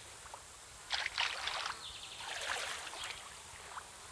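A fish splashes at the water's surface.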